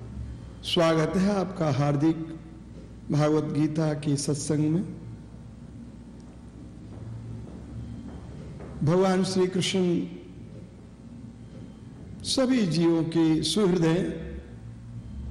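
An elderly man speaks calmly into a microphone, in phrases with pauses.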